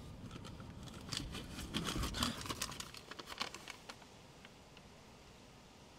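Paper crinkles and rustles between fingers.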